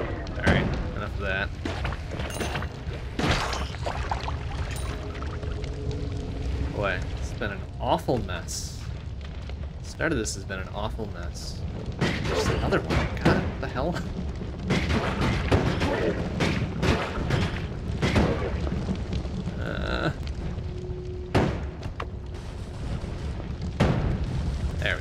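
Blasts and explosions burst now and then.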